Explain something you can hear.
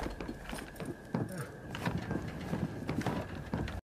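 Footsteps thud on a metal roof.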